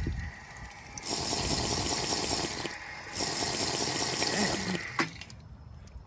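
A young woman slurps and sputters water.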